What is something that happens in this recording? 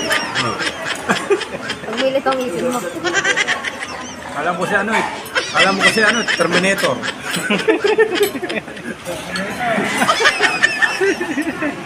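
A spoon and fork clink and scrape on a plate.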